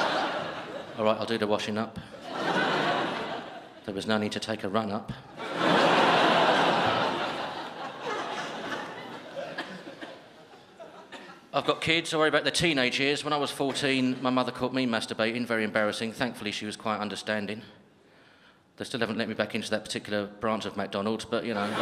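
A man speaks calmly and with humour into a microphone through loudspeakers.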